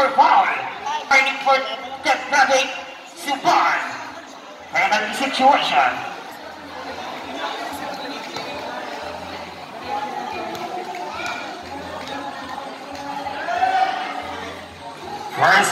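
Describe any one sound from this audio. A crowd chatters and cheers in a large echoing court.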